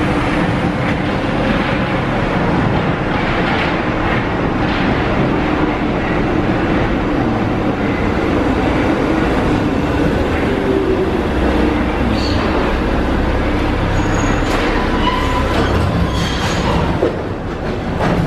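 A metro train rumbles into an echoing underground station and squeals as it slows to a stop.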